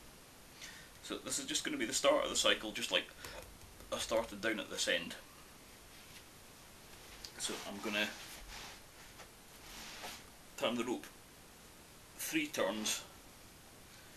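A man speaks calmly close by, in bursts with pauses.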